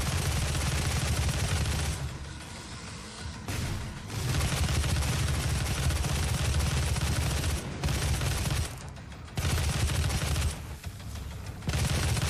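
Heavy guns fire in rapid bursts with loud booming blasts.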